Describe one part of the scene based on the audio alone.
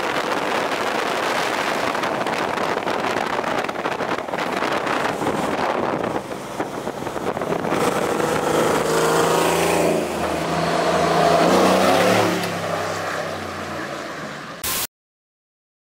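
A large truck engine rumbles as the truck drives past close by.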